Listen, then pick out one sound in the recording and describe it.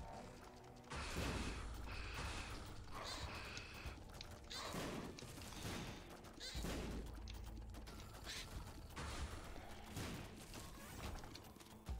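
Game blasts and splatters burst again and again.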